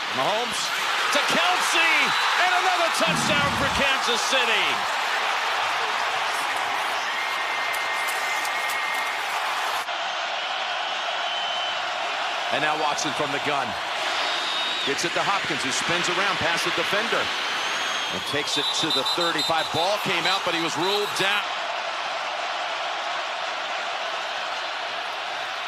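A large crowd cheers and roars in a big open stadium.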